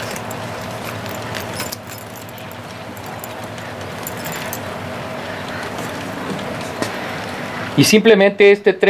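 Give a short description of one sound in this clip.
A model train rumbles steadily along its track.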